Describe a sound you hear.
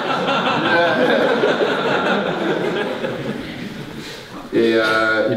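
Two men laugh heartily close by.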